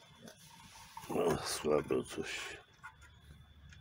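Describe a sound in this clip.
A metal knob scrapes and rattles against a pan.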